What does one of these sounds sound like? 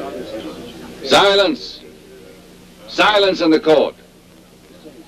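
A man speaks up loudly.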